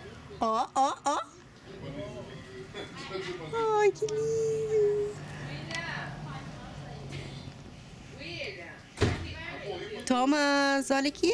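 A toddler babbles and squeals nearby.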